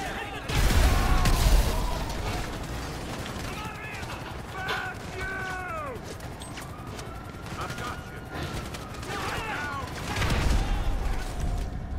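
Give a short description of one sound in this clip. Fires crackle and roar.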